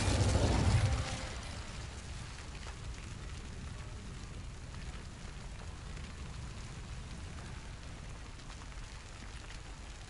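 Water laps and splashes steadily.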